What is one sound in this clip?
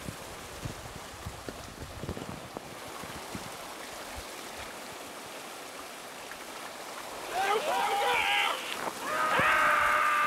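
Water rushes down a slide.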